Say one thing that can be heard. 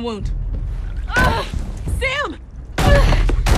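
A young man groans in pain.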